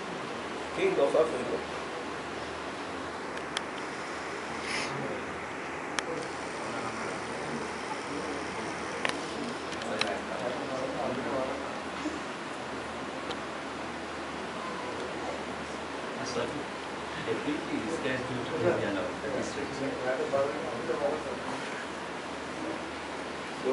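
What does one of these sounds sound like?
An elderly man reads aloud softly and calmly, close by.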